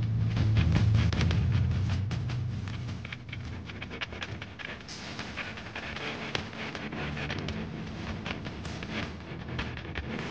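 A guitar strums along.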